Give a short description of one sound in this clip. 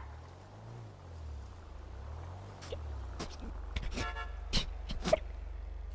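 A car engine hums and draws closer.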